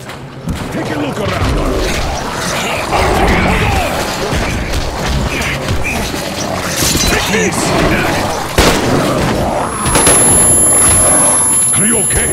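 A monster snarls and roars close by.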